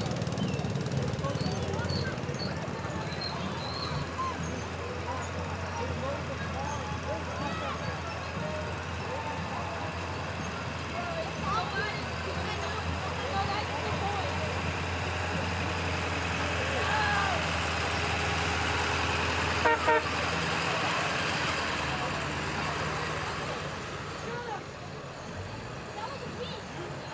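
A crowd of men, women and children chatters along a street.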